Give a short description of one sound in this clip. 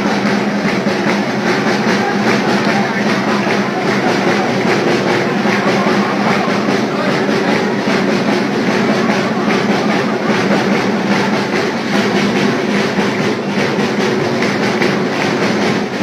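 A crowd sings and cheers loudly in an echoing hall.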